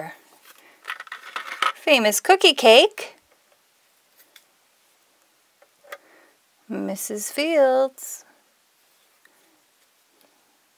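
Small plastic toy pieces click softly as they are handled.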